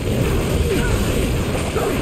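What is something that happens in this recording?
Lightning crackles in a ring.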